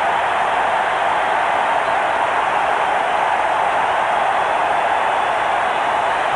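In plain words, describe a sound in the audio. A large crowd cheers and roars loudly in a stadium.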